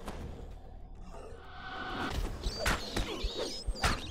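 A spell crackles with fire.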